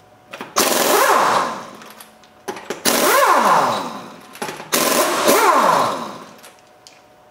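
An air impact wrench whirs in loud bursts, winding up and down.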